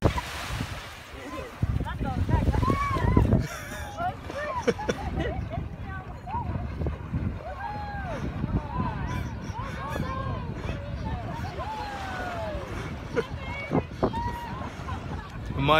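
Small waves lap gently on the shore.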